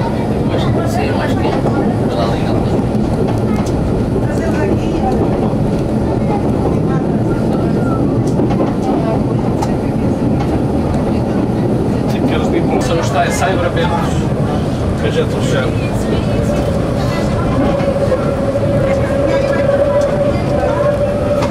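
Train wheels clatter and squeal on the curving track.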